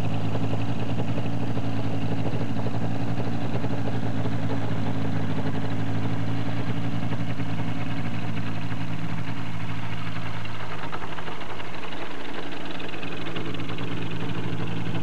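A small plane's propeller engine drones steadily close by, changing tone near the end.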